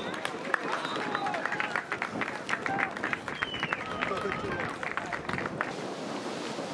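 Men clap their hands.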